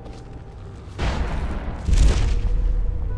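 A sudden magical whoosh rushes past.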